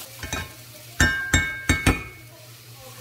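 A spatula clacks against a frying pan.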